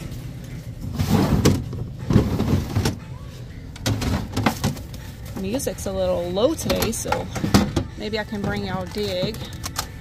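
Objects clatter and rustle as a hand rummages through a plastic bin.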